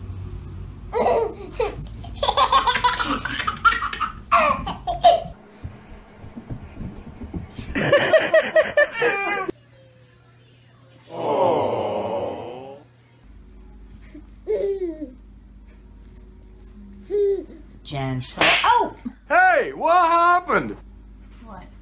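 A baby squeals and laughs excitedly close by.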